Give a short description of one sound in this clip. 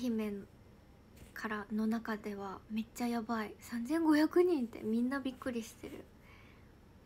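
A young woman speaks close to a microphone, calmly and with animation.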